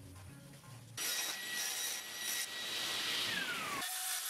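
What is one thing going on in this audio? A table saw whirs as it runs.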